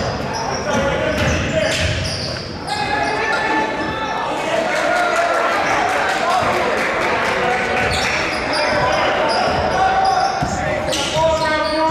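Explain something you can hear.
A crowd of spectators murmurs and cheers.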